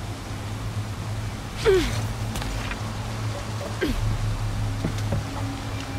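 A metal structure creaks and clanks as someone climbs onto it.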